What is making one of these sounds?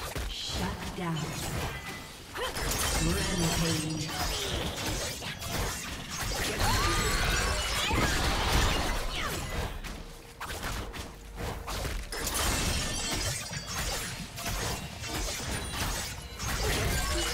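Game spell effects whoosh and crackle in rapid bursts.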